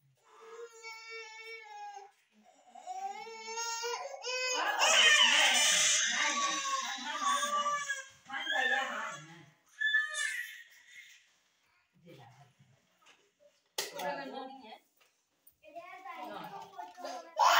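A baby cries and screams loudly close by.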